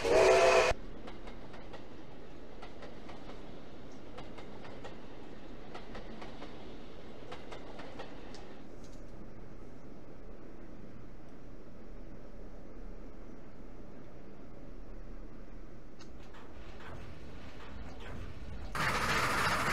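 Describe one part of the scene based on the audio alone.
A steam train rumbles along in the distance.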